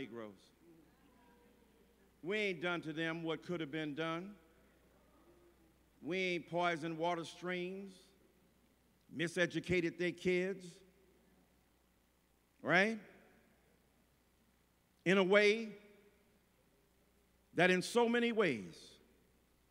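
A man preaches into a microphone with slow, emphatic phrases and long pauses, in a large echoing hall.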